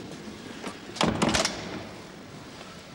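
A key clunks loudly in a heavy door lock.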